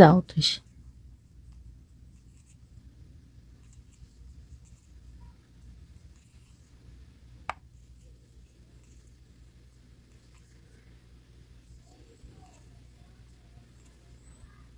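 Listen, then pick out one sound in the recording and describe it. A metal crochet hook softly scrapes and clicks through yarn.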